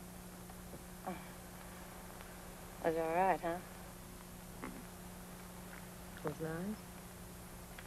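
A man speaks softly and warmly in an old film recording.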